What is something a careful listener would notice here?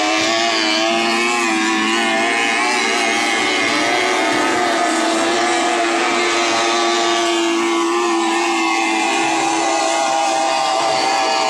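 A racing powerboat's engine whines loudly at a high, steady pitch as the boat speeds past on the water.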